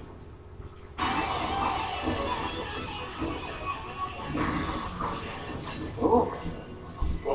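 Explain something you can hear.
An electric guitar plays a loud distorted riff.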